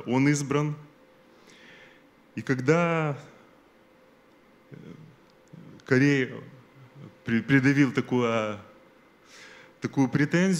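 An elderly man speaks slowly and expressively into a microphone, with pauses between phrases.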